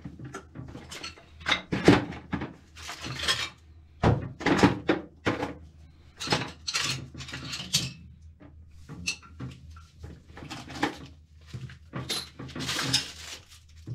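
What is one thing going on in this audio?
Things knock and scrape close by.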